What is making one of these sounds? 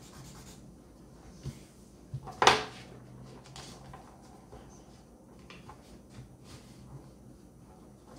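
Paper rustles and taps on a table.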